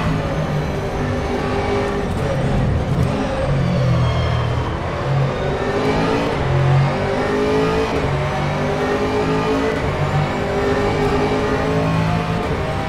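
A racing car engine roars and revs up and down as gears shift.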